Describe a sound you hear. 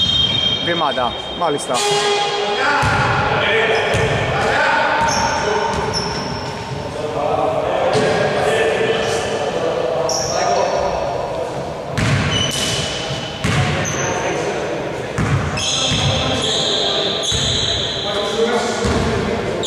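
Sneakers squeak sharply on a wooden court in an echoing hall.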